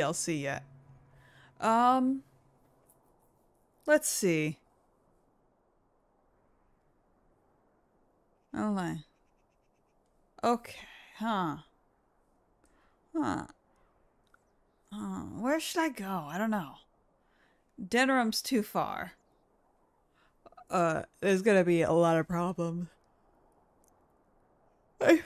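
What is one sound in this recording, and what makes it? A young woman talks with animation into a close microphone, in short bursts with pauses.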